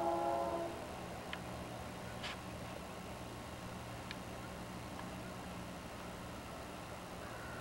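A diesel locomotive engine rumbles steadily as it approaches.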